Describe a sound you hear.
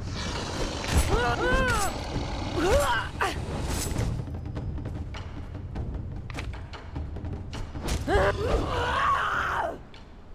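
Sword blows strike with sharp thuds.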